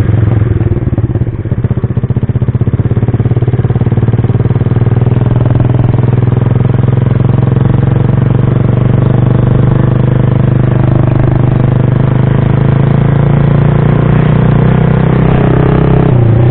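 A motorcycle engine hums steadily while riding along a road.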